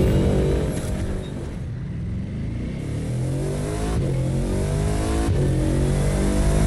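A car engine drops low and then revs up rising.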